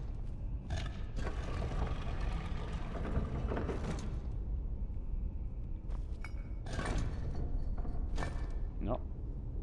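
Heavy stone rings grind and scrape as they turn.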